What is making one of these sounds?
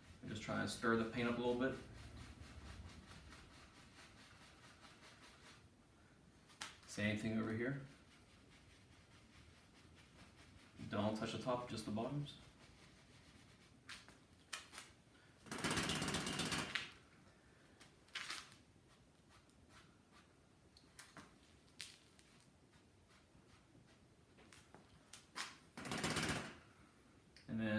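A brush scrubs against canvas.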